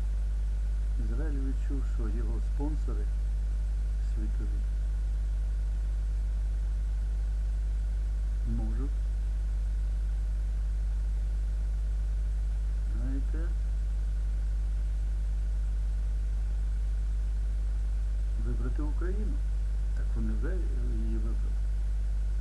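An elderly man speaks calmly in short bursts, close to a microphone.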